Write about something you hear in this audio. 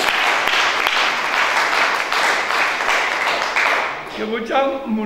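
A group of people clap their hands rhythmically.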